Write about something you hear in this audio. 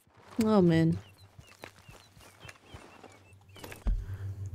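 Boots crunch on a dirt path.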